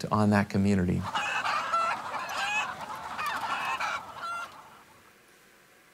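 Hens cluck and squawk through a loudspeaker.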